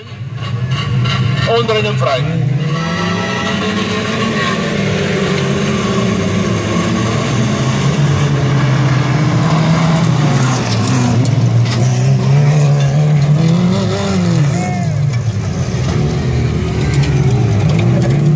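Several car engines roar and rev loudly as racing cars speed past.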